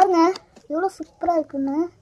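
A plastic box clicks as it is opened.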